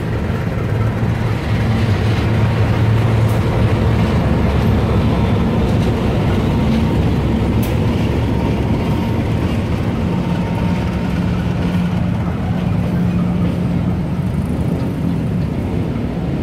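Train wheels clatter and roll over the rails close by.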